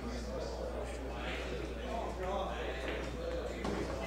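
A cue tip strikes a billiard ball with a sharp click.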